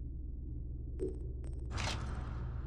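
A game menu clicks as a tab changes.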